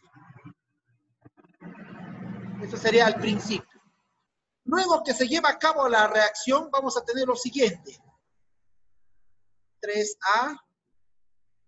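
A man speaks calmly into a microphone, as if in an online call.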